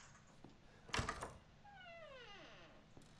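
A wooden door creaks open slowly.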